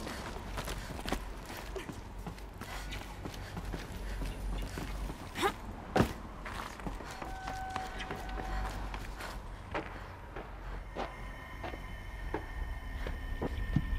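Footsteps run over stone and rubble.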